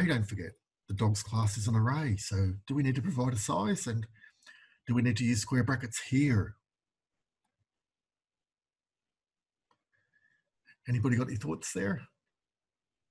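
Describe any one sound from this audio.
A man speaks calmly and explains closely through a microphone, with pauses.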